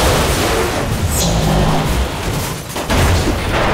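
A huge explosion roars and rumbles outdoors.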